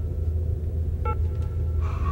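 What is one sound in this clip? A finger presses a keypad button with a click.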